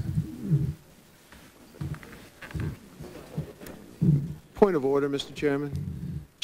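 A man talks in a low, hushed voice close to a microphone, in short bursts.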